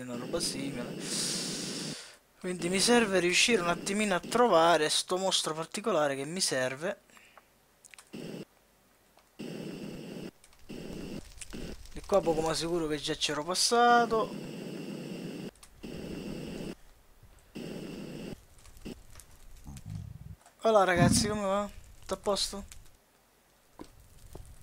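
Lava bubbles and pops.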